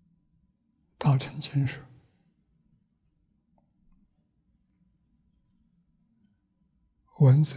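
An elderly man speaks calmly and slowly into a close microphone.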